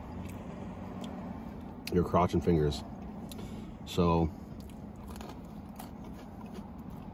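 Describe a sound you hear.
A man chews food with his mouth closed.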